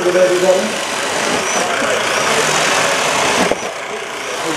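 A power drill whirs as it bores into wood.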